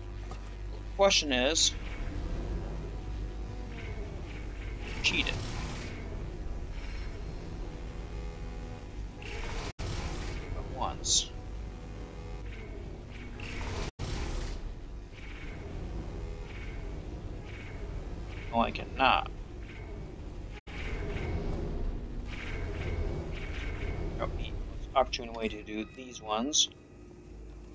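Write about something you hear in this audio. An electronic device chimes sharply, again and again.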